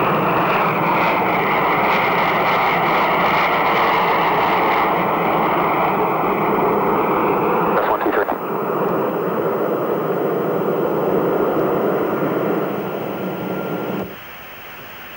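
Jet engines of a large airliner roar loudly as it flies past.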